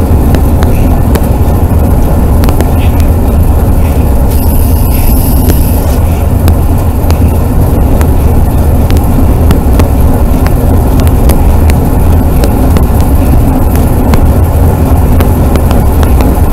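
Wind rumbles and buffets heavily against a microphone outdoors.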